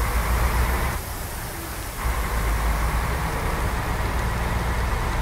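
A bus engine rumbles steadily as it drives along a road.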